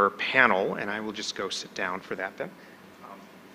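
A man speaks with animation into a microphone in a large hall.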